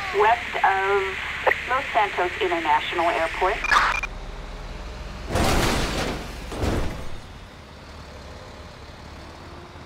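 A heavy tank engine rumbles low as the tank drives.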